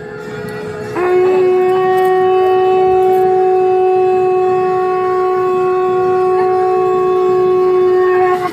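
A conch shell is blown in a long, steady, loud blast.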